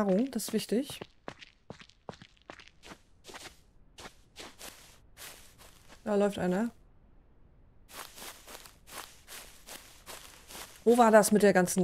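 Footsteps crunch steadily on the ground.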